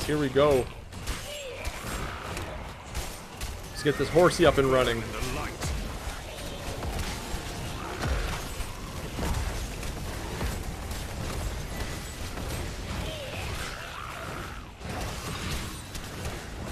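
Spell blasts and weapon hits crash and whoosh in quick bursts.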